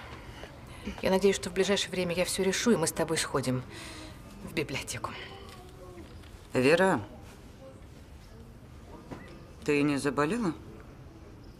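A middle-aged woman speaks calmly and firmly up close.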